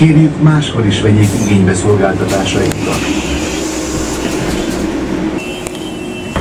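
A bus engine rumbles and hums from inside the cabin.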